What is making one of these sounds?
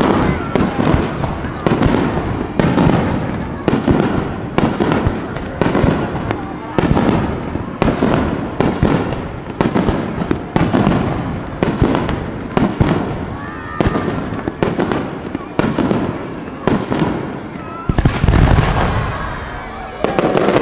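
Fireworks burst with loud booming bangs that echo outdoors.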